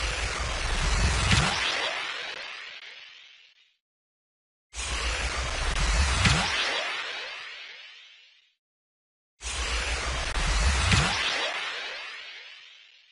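A loud whooshing burst swells and slowly fades away, three times.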